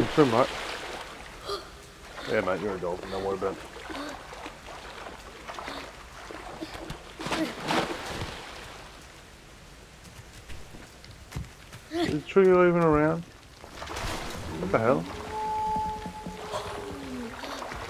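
Water splashes as a swimmer strokes through it.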